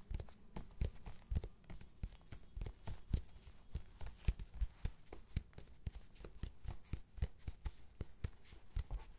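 Fingers tap and scratch rapidly on a leather surface close up.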